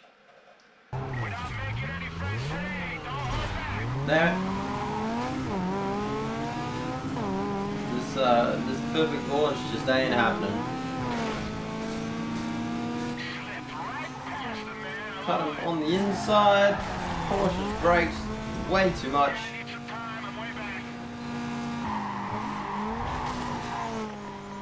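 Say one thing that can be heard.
A car engine revs and roars at high speed, rising and falling in pitch as gears change.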